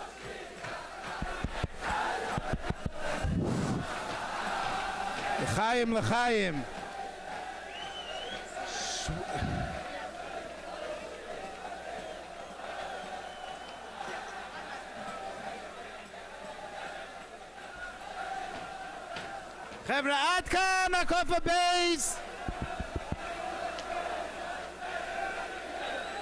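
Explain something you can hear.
A large crowd of men sings and chants loudly in an echoing hall.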